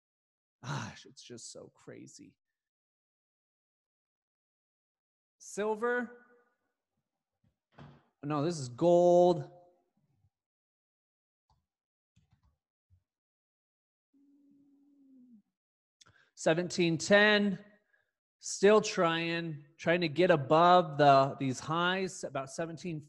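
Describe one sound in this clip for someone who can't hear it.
A man speaks calmly into a close microphone, in bursts with pauses.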